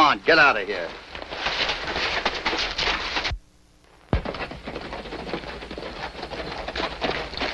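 Horses gallop over hard ground, hooves clattering.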